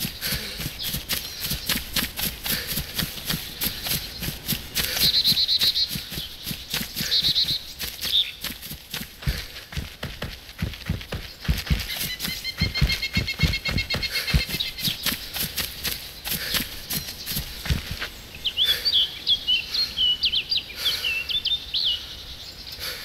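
Footsteps crunch through grass and leaves at a steady pace.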